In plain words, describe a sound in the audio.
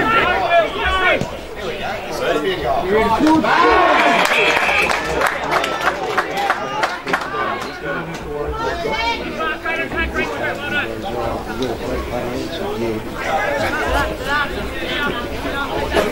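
Young men shout to each other across an open field, outdoors.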